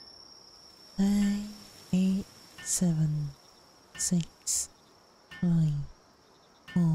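Short electronic tones chime again and again as building parts snap into place.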